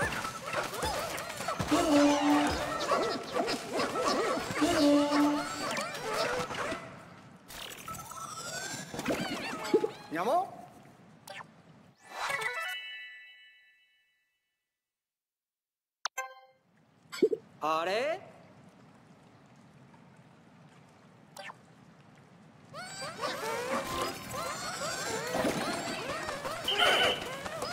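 Small cartoon creatures chirp and squeak in busy, bright bursts.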